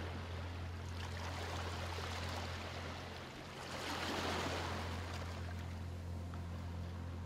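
Gentle waves lap and wash softly over a pebbly shore.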